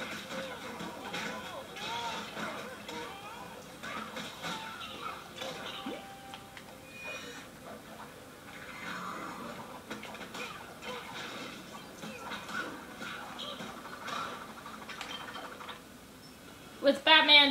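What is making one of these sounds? Cartoonish crashes and clinks of scattering pieces sound from a video game.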